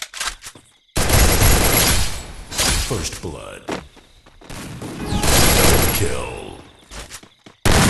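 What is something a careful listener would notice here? Rifle shots fire in bursts.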